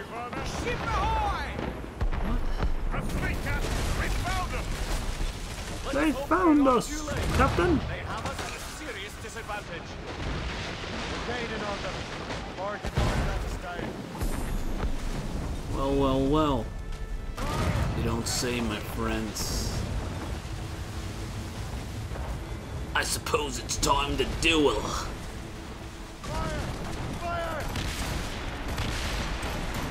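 Wind howls steadily over rough sea.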